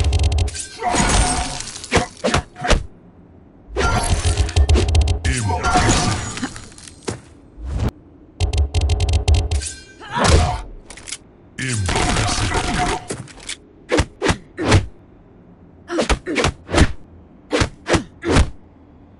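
Punches and kicks land with sharp thuds in a fighting game.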